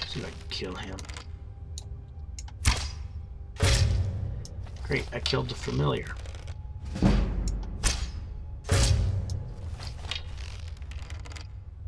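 A bow fires an arrow with a sharp twang.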